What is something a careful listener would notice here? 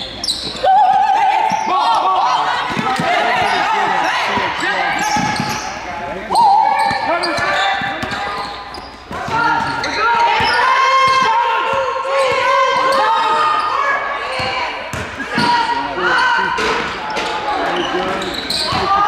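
Sneakers squeak sharply on a hard floor.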